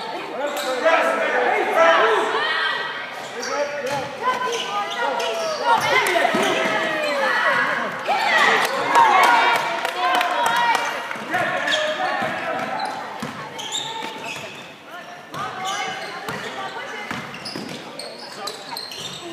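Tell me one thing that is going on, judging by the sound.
Sneakers squeak on a hardwood floor in a large echoing gym.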